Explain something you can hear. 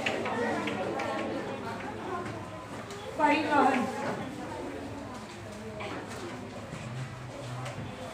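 A young woman speaks in a calm, instructive way close by.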